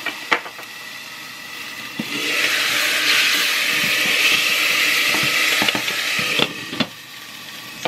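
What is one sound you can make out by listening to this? A metal pot lid clinks against a pot.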